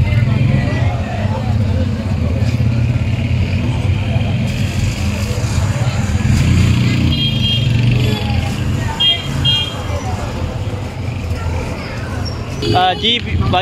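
A crowd of men murmurs and talks outdoors.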